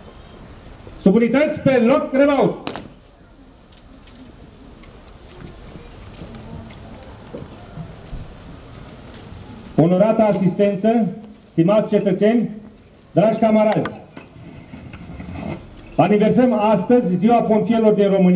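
An older man speaks steadily through a microphone and loudspeakers outdoors, in bursts with pauses.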